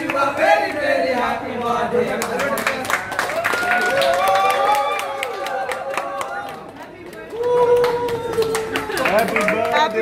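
A group of young men and women sing together loudly nearby.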